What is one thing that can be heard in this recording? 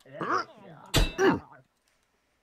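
A metal blade clangs sharply against another weapon.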